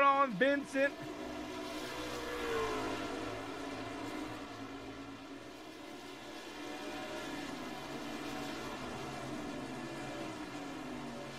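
Racing truck engines roar steadily as they speed past.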